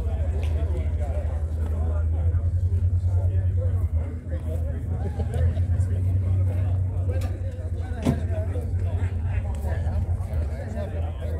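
Men talk casually a short way off.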